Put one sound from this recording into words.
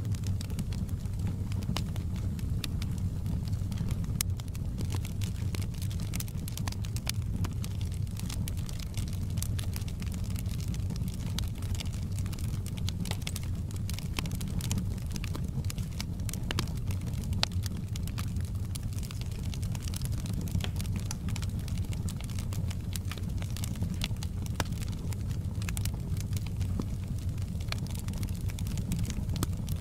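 A wood fire roars steadily.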